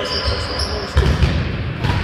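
A futsal ball is kicked on a hard indoor court.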